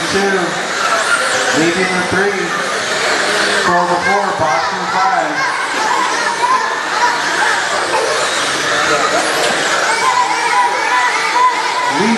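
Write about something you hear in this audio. Electric motors of small model cars whine as they race around a track.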